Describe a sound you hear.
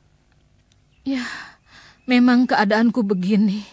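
A woman wails loudly in anguish, close by.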